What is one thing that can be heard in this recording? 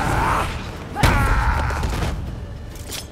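A blade strikes with a sharp, ringing hit.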